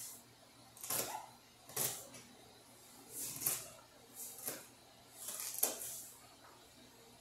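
A knife cuts vegetables on a cutting board with soft repeated chops.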